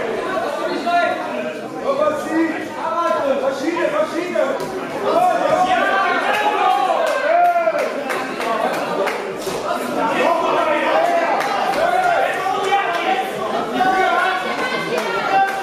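Boxing gloves thump against bodies in quick sharp hits.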